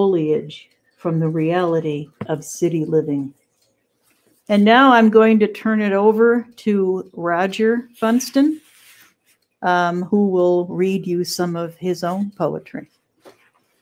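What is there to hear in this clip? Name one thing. An elderly woman speaks calmly through an online call.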